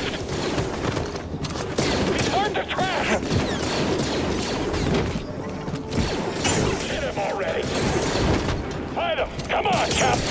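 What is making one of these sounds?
A lightsaber hums and swishes through the air.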